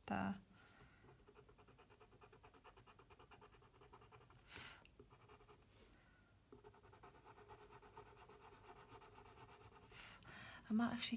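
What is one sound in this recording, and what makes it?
A colored pencil scratches rapidly on paper in short, quick strokes.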